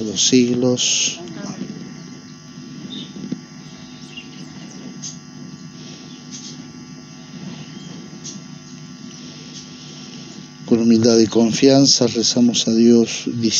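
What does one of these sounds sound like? A man speaks calmly and slowly into a microphone.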